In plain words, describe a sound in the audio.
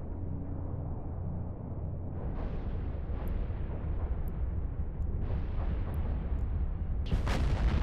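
Laser beams hum and crackle as they fire.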